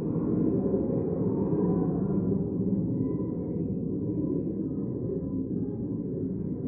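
Many people murmur and chat quietly in a large room.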